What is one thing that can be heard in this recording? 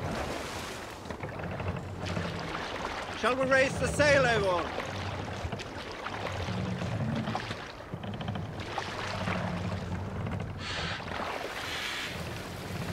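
Oars dip and pull through water in a steady rhythm.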